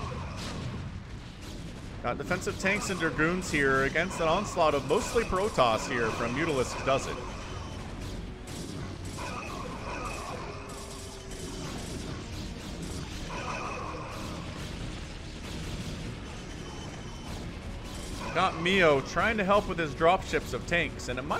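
Small weapons zap and crackle in a busy battle.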